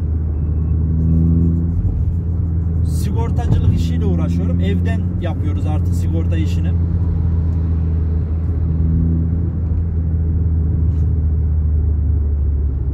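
A car engine hums steadily at low pitch.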